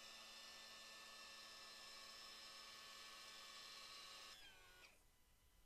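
An outboard motor idles with a steady hum, then stops.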